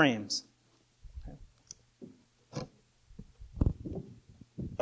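A wooden board knocks and scrapes as a man handles it.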